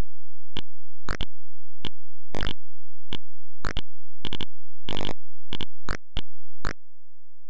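Short electronic beeps and blips sound as a ball bounces off a paddle.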